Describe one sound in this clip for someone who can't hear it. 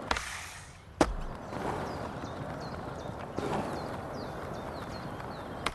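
Skateboard wheels roll steadily over concrete.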